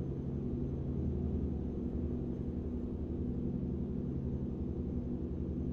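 A truck engine rumbles steadily at a low pitch.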